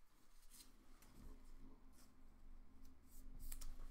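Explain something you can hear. A plastic card sleeve rustles.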